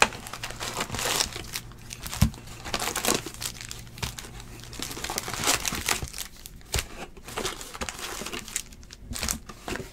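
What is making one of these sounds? Foil card packs crinkle and rustle as a hand shuffles through them.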